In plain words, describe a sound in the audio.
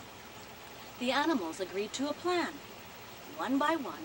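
A middle-aged woman reads aloud close by, in an expressive storytelling voice.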